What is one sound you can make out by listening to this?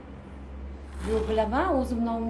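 A young woman speaks on a phone with animation, close by.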